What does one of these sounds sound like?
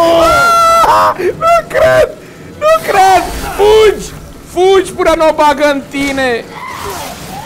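A young man shouts and exclaims excitedly into a microphone.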